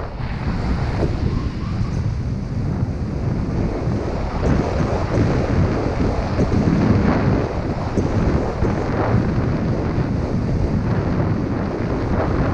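Skis scrape and hiss over hard snow at speed.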